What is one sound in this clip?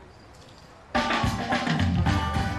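Music plays loudly through outdoor loudspeakers.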